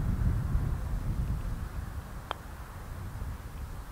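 A golf putter taps a ball once.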